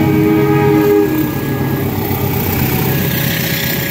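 A train rumbles past on the tracks.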